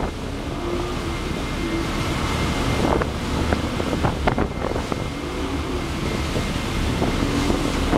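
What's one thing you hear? Outboard motors drone at speed.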